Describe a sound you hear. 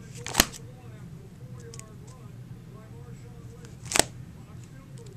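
Plastic binder pages flip with a sharp crackle.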